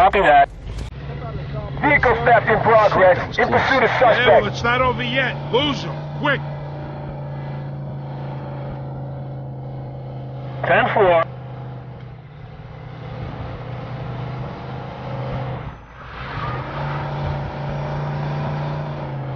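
A car engine hums steadily as the car drives off and speeds up.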